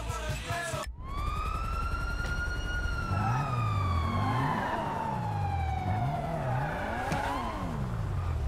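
A car engine roars and slowly winds down.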